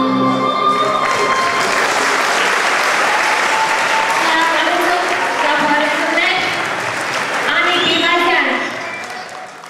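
A woman announces through a loudspeaker with animation in a large echoing hall.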